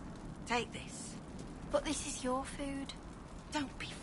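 A campfire crackles close by.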